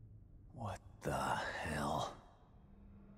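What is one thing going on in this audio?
A man mutters in surprise, close by.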